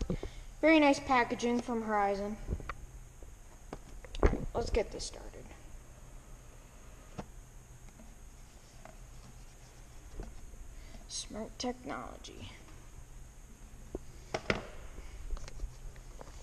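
A cardboard box rustles and taps in a hand.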